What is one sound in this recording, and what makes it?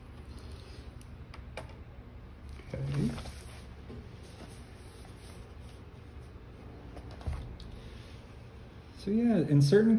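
Paper rustles as a notebook page is moved and turned.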